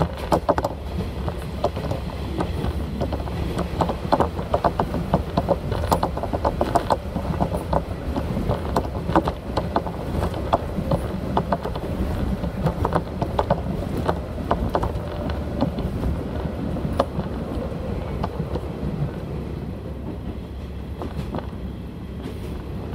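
A diesel railcar rumbles along, heard from inside the carriage.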